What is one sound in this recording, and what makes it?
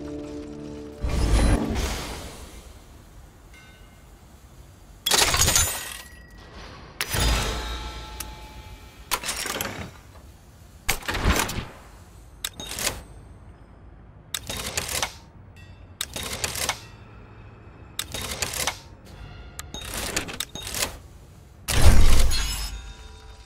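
Short mechanical whooshes and clanks sound as game menus open and close.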